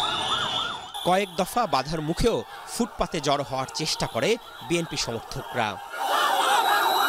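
A man shouts up close.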